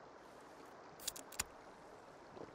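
A drink can snaps open with a sharp click.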